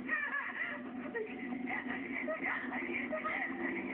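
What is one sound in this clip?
A young woman cries out in distress on a phone.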